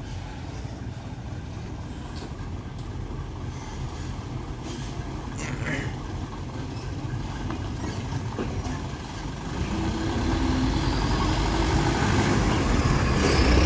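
A truck engine rumbles and labours nearby.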